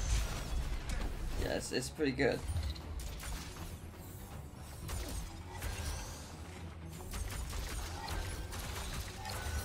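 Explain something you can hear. Sword strikes clang and slash repeatedly.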